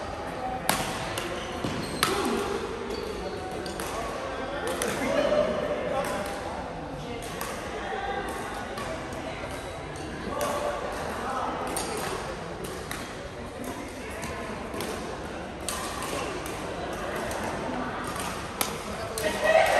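Shuttlecocks are struck sharply by rackets in a large echoing hall.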